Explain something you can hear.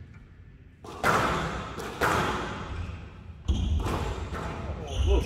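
A squash ball smacks hard against the walls, echoing in a large hall.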